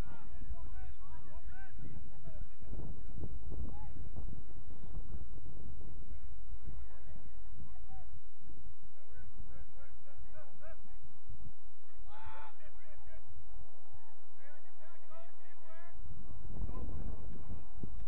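Players shout to each other across an open field in the distance.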